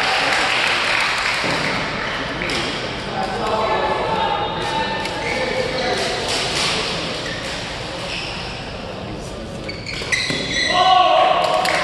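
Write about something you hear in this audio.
Young women and men chat and call out across the echoing hall.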